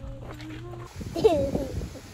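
A toddler babbles and coos close by.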